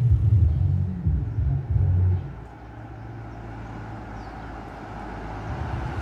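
A car drives slowly along a street.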